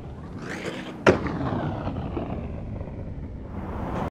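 Skateboard wheels roll over pavement.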